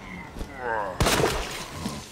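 A pistol fires a loud shot.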